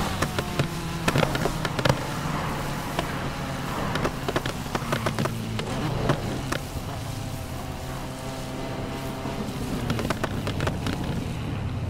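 An exhaust pops and crackles with backfires.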